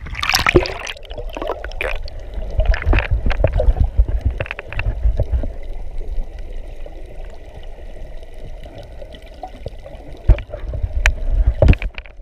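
Muffled underwater rumbling and knocking sound nearby.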